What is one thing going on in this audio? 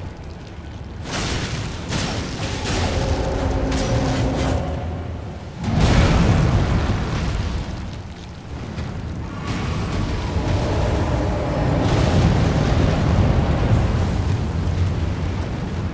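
Heavy blows thud and crash.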